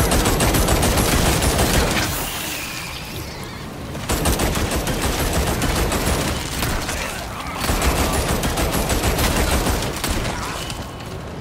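Zombies groan and snarl nearby.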